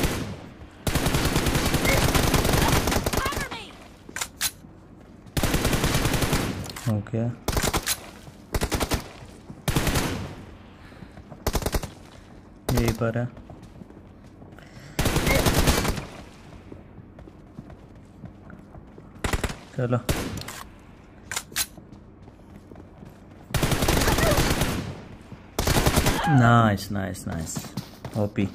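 Rapid bursts of gunfire play from a mobile game.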